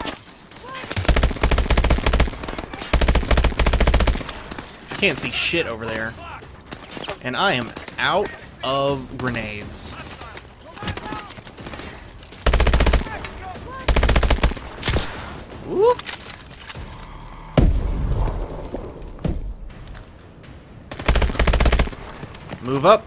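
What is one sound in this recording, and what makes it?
Rapid bursts of automatic gunfire rattle loudly.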